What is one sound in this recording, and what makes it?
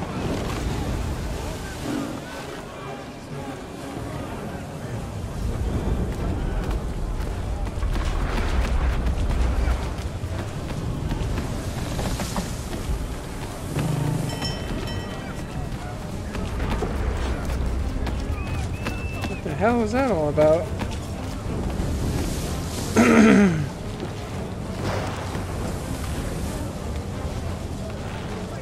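Wind roars and waves crash in a storm.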